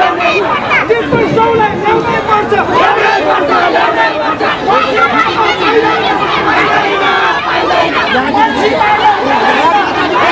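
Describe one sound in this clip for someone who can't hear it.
A crowd of men and women shout and argue loudly outdoors.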